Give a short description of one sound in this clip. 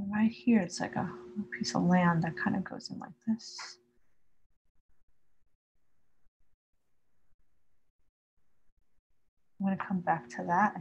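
A woman speaks calmly and close by, pausing between remarks.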